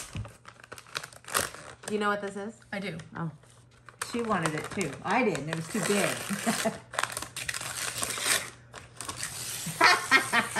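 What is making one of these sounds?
Tissue paper rustles and crinkles in a gift bag.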